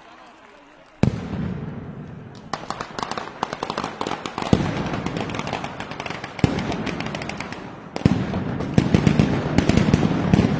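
Firecrackers explode in a rapid, loud string of bangs.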